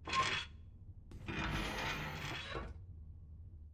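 A heavy metal safe door creaks open.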